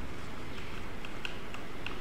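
A tennis ball bounces on a clay court.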